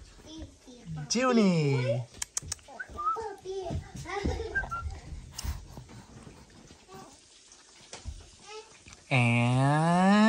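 A baby babbles and coos close by.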